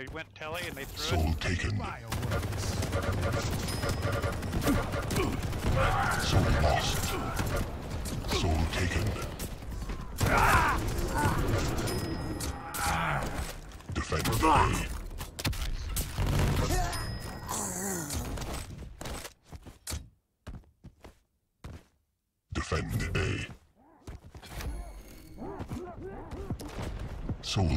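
Gunfire and explosions ring out rapidly in a video game.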